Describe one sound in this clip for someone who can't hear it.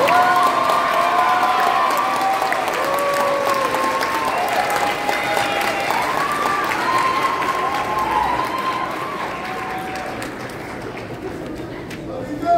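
A children's choir sings together in a large hall.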